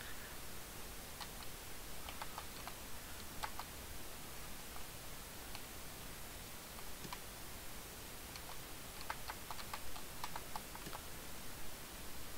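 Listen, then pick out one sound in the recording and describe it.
Soft chimes and blips sound as items are picked up in a game.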